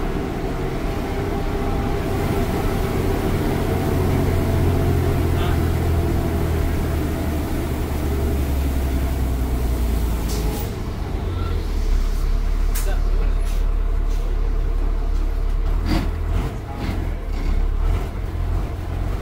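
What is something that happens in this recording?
A bus engine rumbles steadily, its pitch shifting as the bus changes speed.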